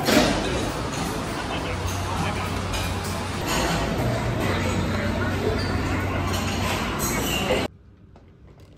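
A crowd chatters all around in a busy room.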